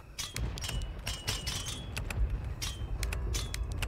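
A metal pick clicks and scrapes inside a lock.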